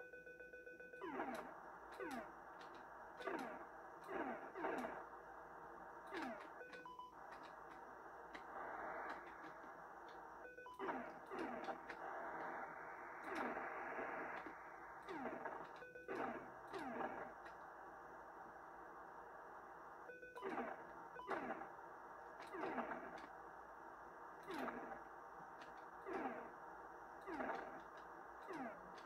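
Video game shots fire in quick falling zaps, over and over.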